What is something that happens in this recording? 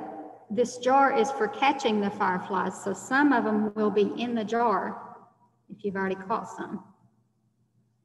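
A young girl speaks with animation through an online call.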